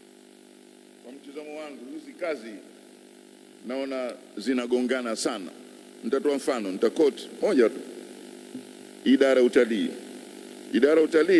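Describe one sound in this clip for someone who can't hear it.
An adult speaks calmly through a microphone in a large room.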